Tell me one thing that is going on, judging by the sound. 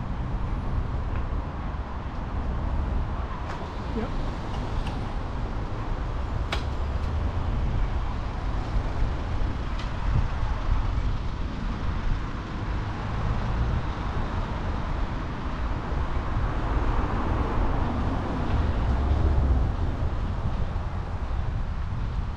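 Bicycle wheels roll over pavement.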